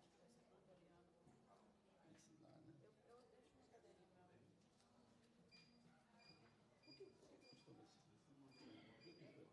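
Several men and women murmur and talk quietly in a room.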